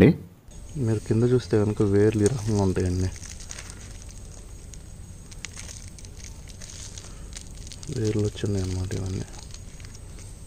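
Hands scrape and pull at dry soil close by.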